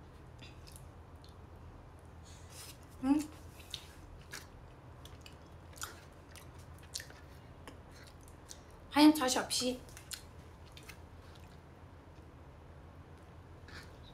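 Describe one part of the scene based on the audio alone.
A young woman chews and bites into crispy food close to a microphone.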